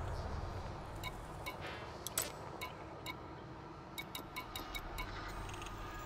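Short electronic blips sound as a game menu selection moves.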